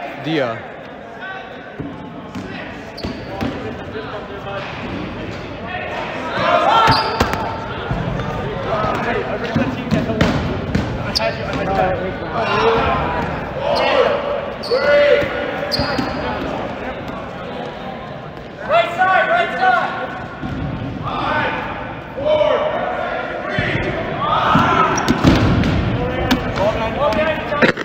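Young men shout and call out to each other across the hall.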